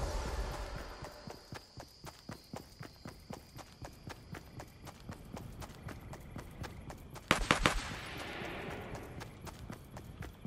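Footsteps patter quickly and steadily on grass.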